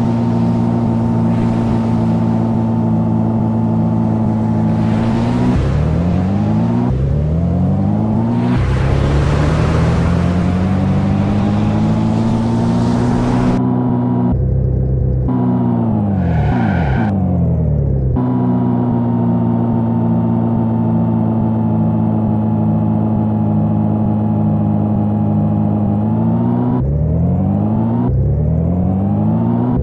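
A car engine hums and revs up through the gears, then slows and revs again.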